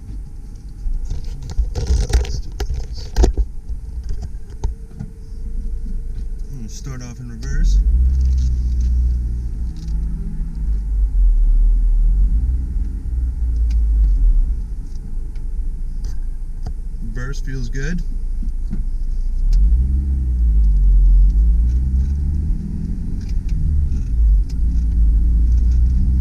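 A car engine idles and then revs up and down as the car accelerates.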